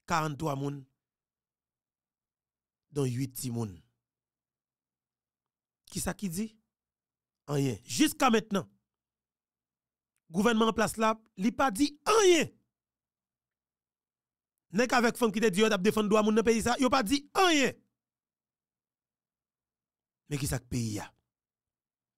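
A young man speaks into a close microphone with animation, in short bursts and pauses.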